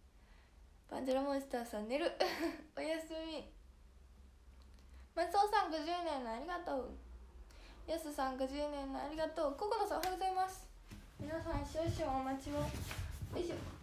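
A young woman talks cheerfully and closely into a microphone.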